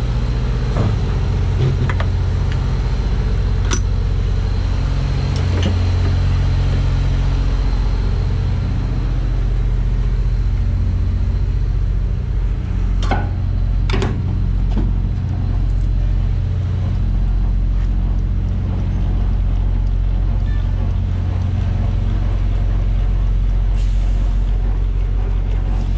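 A refrigeration unit's diesel engine drones steadily nearby.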